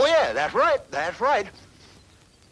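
An elderly man speaks loudly with animation.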